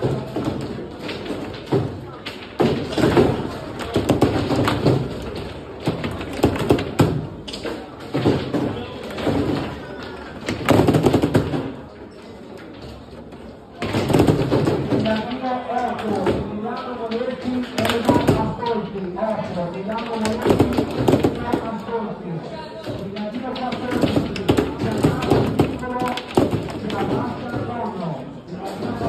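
A ball knocks against the sides of a foosball table.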